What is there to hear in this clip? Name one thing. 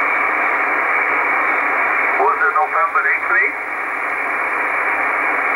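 A radio receiver hisses with steady static through a small loudspeaker.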